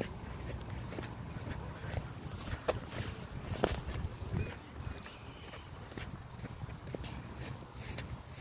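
Footsteps crunch and scuff on the ground.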